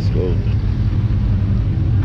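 A car rolls past.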